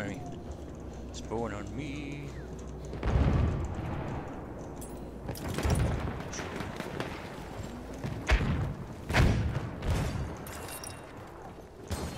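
Footsteps thud across a wooden floor.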